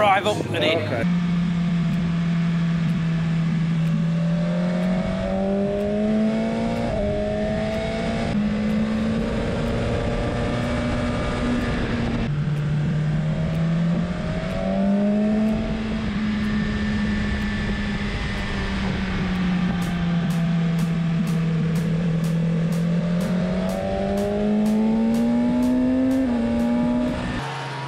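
A motorcycle engine roars at high revs, rising and falling as it shifts gears.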